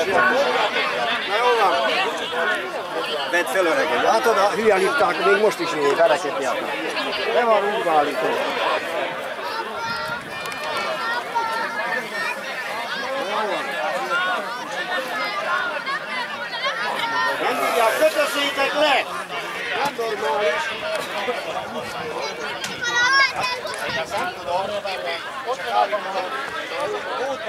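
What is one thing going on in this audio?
A crowd of men shout and argue heatedly close by, outdoors.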